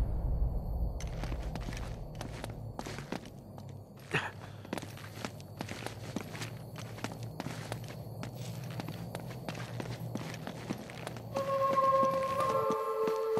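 Footsteps tread and scuff on stone floor, echoing in a hollow space.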